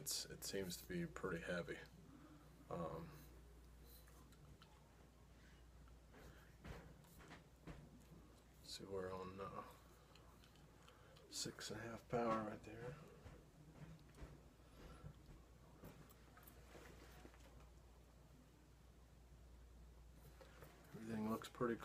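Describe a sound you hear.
A man talks calmly close by, in short bursts with pauses.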